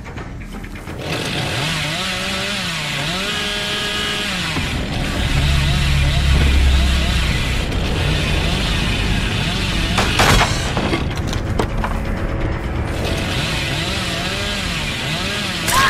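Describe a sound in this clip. A chainsaw engine revs up and down.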